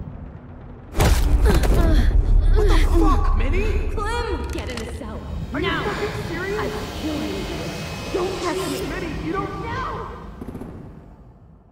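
A young woman shouts angrily.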